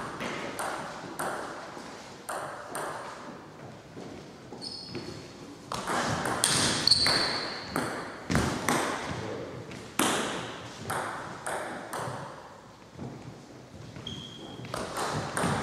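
A table tennis ball clicks back and forth off paddles and the table in a large echoing hall.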